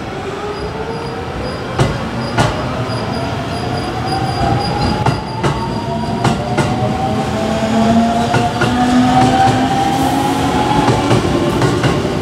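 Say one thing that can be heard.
Electric motors whine with a rising pitch as a train speeds up.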